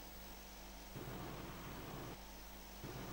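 A large explosion booms and rumbles.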